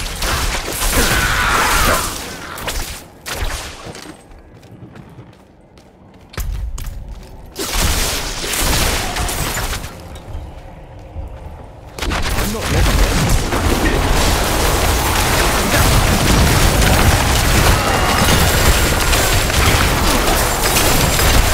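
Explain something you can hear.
Spells and weapons clash in a game's battle, with loud blasts and crackling.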